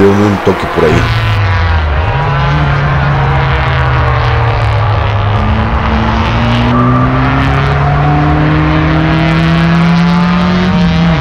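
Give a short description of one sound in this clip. Car engines drone steadily, rising slowly in pitch.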